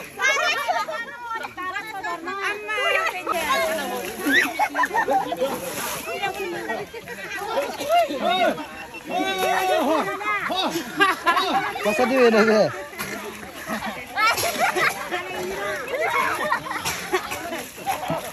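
A crowd of women shout and cheer excitedly close by.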